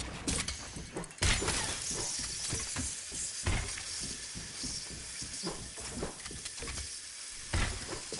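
Wooden walls and ramps thud and clatter as they are quickly built in a game.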